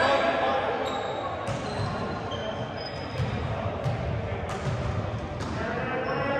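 Many voices chatter and call out, echoing in a large hall.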